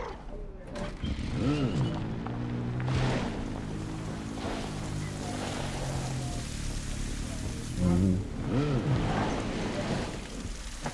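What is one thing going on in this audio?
A motorbike engine hums and revs.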